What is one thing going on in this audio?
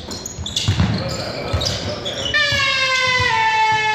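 A basketball thumps on a hard floor in an echoing hall.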